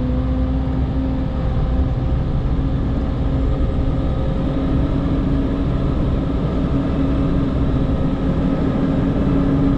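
A heavy diesel engine rumbles steadily from inside a vehicle cab.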